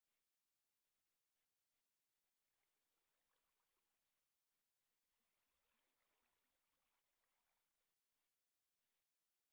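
Footsteps pad softly on grass.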